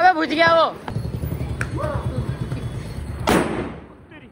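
A firecracker fizzes and hisses.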